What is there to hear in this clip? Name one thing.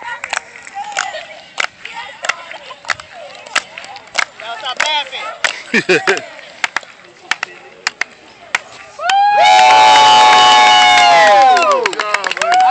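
Young girls chant and shout cheers outdoors.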